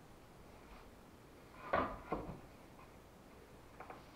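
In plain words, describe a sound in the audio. A hand taps and rubs against a wooden window frame.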